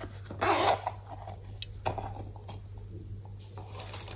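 A zipper on a small pouch rasps open.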